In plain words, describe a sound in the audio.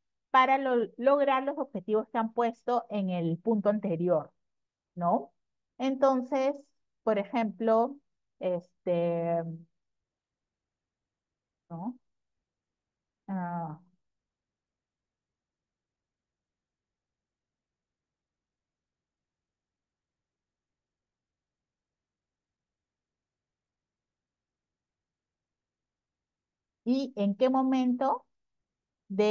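A woman speaks calmly through an online call microphone, pausing often.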